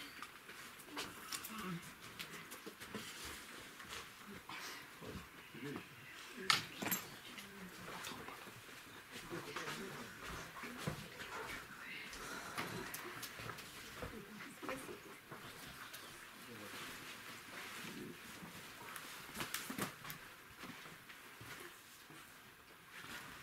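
An elderly man chants a prayer in a low voice.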